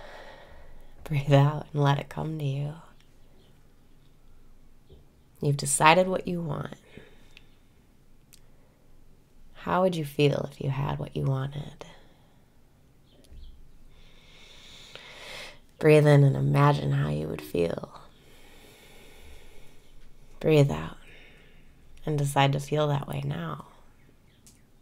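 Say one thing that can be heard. A young woman speaks softly and calmly close to a microphone, in short phrases with pauses.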